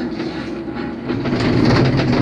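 A cable car cabin clatters loudly as it rolls through a station.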